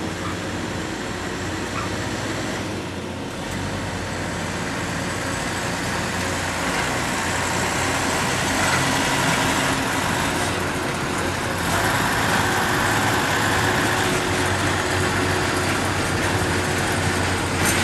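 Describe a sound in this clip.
A track maintenance machine rumbles along the rails at night.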